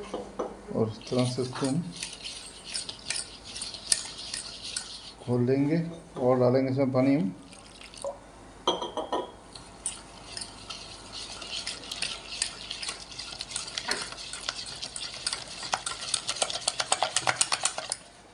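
A wire whisk scrapes and taps rapidly against a metal bowl.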